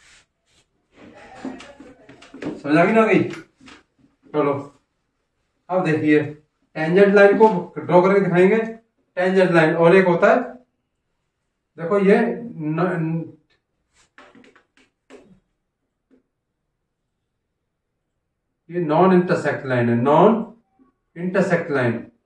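A middle-aged man speaks calmly and clearly, as if teaching, close by.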